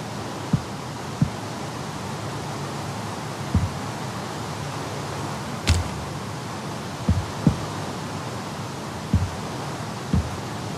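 Wooden blocks thump softly as they are placed.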